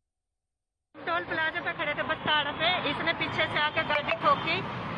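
A middle-aged woman speaks with animation close to a microphone.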